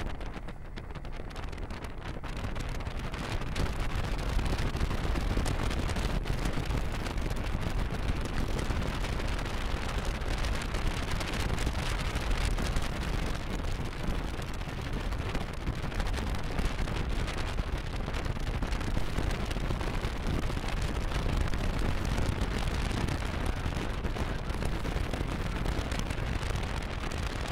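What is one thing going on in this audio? Tyres hiss over a hard, dry surface.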